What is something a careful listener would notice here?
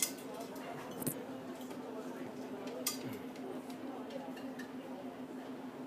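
People talk quietly nearby.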